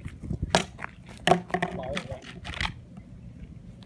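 A plastic disc clatters onto pavement outdoors.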